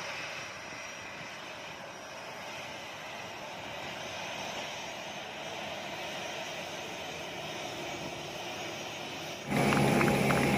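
A jet airliner's engines hum as it taxis nearby.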